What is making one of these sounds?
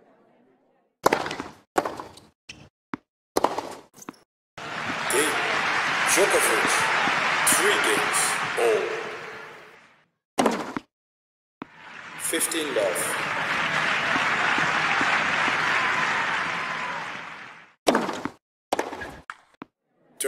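Rackets strike a tennis ball with sharp pops.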